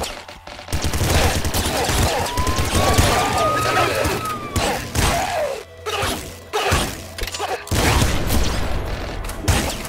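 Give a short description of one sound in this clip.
Small explosions pop and burst.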